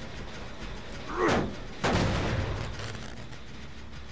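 A machine clanks and rattles as it is worked on.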